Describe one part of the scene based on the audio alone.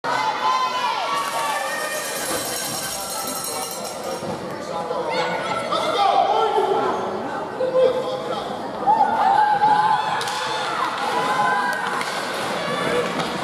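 Spectators chatter and call out.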